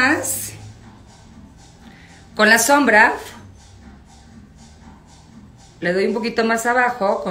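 A woman talks calmly and close by, in short bursts.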